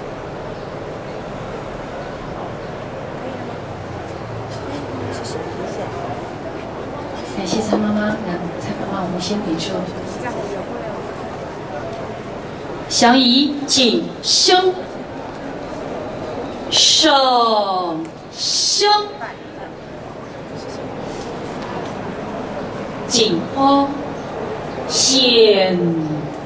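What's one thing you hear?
A crowd of people murmurs softly in the background.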